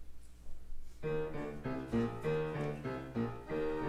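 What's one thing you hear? An organ begins playing a tune.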